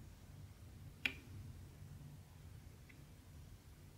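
A plastic pen taps sharply against a plastic tray.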